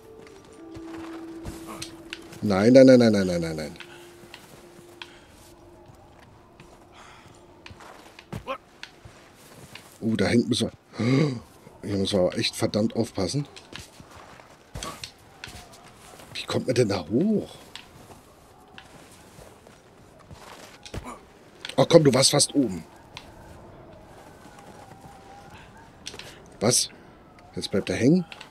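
Boots scrape and scuff on rock as a man climbs.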